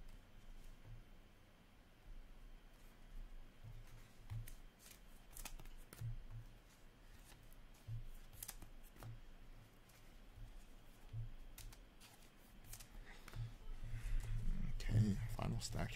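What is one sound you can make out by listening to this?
Trading cards click and rustle as they are shuffled by hand.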